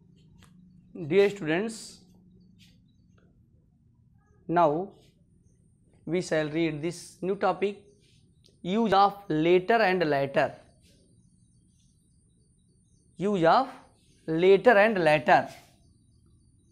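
A man speaks clearly into a clip-on microphone, explaining in short bursts.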